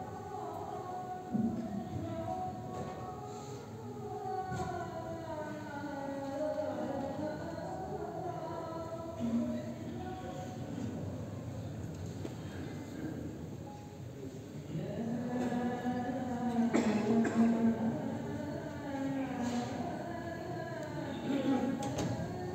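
A man's voice chants a prayer through a loudspeaker in a large echoing hall.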